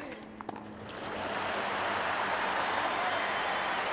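A crowd bursts into loud applause.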